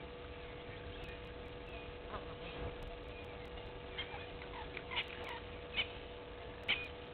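A bird chirps and calls in short bursts nearby.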